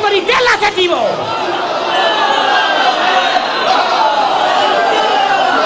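A man chants with strong emotion into a microphone over loudspeakers.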